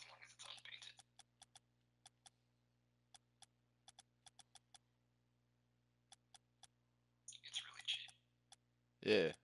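Short interface clicks tick rapidly, one after another.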